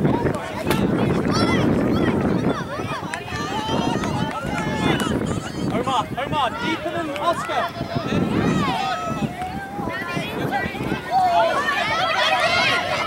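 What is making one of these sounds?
A crowd of adults and children shouts and cheers nearby outdoors.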